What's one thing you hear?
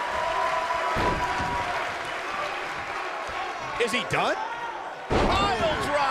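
Heavy thuds ring out as bodies slam onto a wrestling mat.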